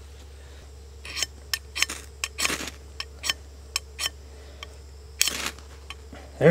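A steel scrapes sharply along a fire starter rod.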